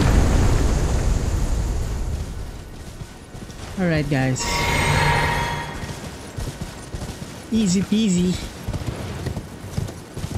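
Horse hooves thud steadily on grass.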